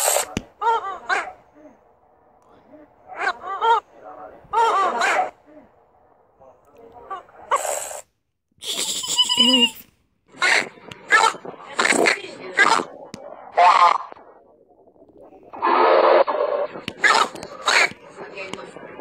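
A rubber toy squeaks loudly as it is squeezed.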